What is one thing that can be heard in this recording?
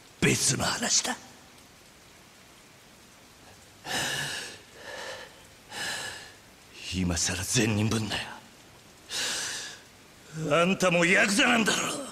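A man speaks tensely and angrily, close by.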